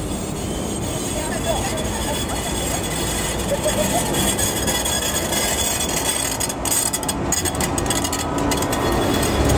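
A tram rumbles past close by on its rails.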